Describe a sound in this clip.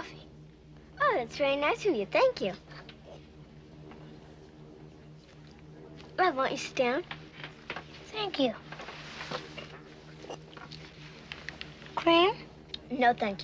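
A young boy speaks politely.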